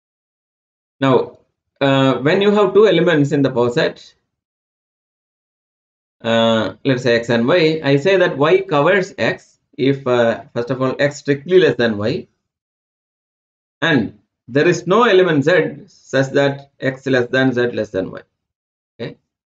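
A man speaks calmly into a close microphone, explaining in a lecturing tone, with pauses.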